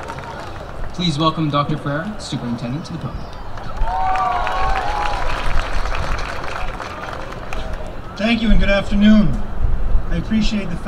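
A man speaks calmly through a loudspeaker outdoors.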